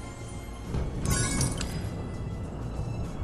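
A bright chime rings as a coin is collected.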